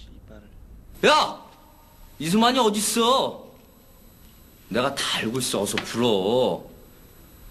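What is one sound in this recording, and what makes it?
A man speaks loudly and urgently, close by.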